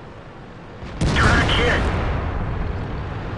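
A shell slams into a tank with a loud bang that rings out.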